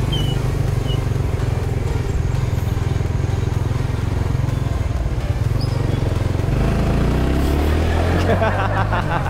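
A scooter engine hums steadily and rises in pitch.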